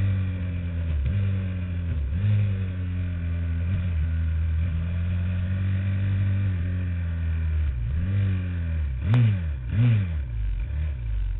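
A small engine drones loudly close by, its pitch dipping and rising as the throttle changes.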